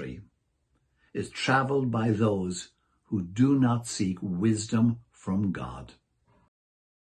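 An elderly man speaks calmly and clearly into a microphone close by.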